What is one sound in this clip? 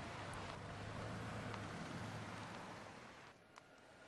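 A woman's heels click on pavement.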